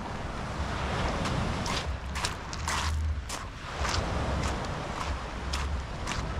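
Footsteps crunch on pebbles.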